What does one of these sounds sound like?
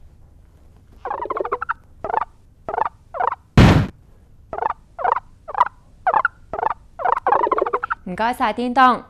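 A cartoon character squeaks and cries in short bursts.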